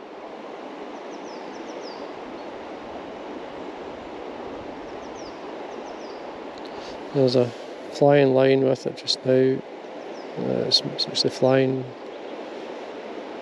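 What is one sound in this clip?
A river flows steadily over stones.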